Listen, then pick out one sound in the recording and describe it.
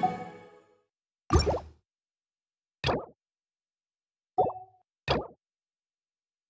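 Game menu interface sounds chime and whoosh as menus change.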